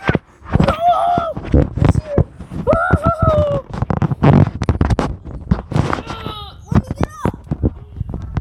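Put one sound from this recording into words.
A young child squeals and shrieks excitedly close by.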